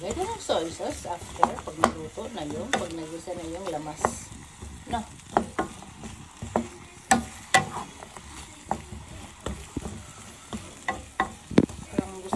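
Chicken and onions sizzle in a hot pan.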